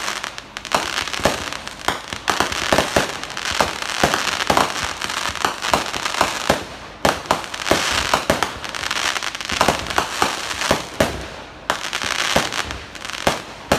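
Fireworks bang and pop in rapid bursts.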